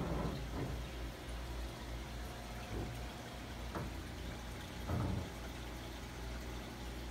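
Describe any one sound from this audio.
An aquarium filter hums steadily with a low bubbling.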